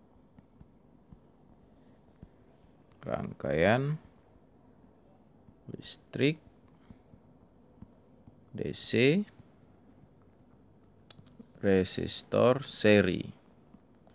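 A stylus taps and scratches softly on a tablet.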